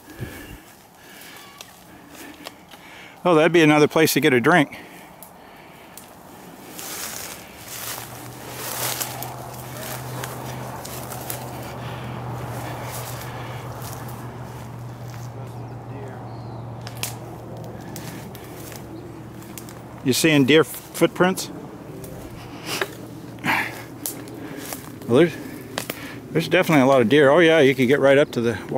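Dry grass and twigs rustle and crackle underfoot.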